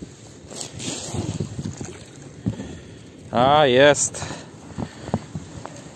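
A cord rustles and scrapes as it is pulled in over snow.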